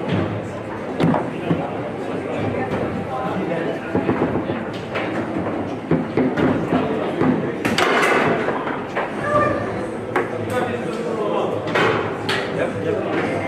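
A foosball ball cracks against the figures and the table walls.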